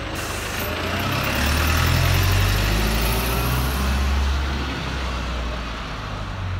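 A bus pulls away, its engine revving as it drives off.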